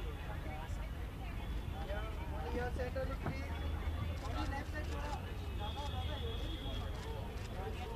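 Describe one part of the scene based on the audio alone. A crowd of men and women chatter and call out nearby.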